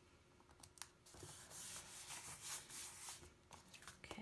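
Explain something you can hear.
A hand rubs card flat against a table.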